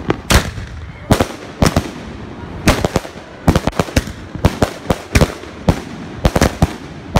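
Fireworks burst with loud, rapid booms and cracks.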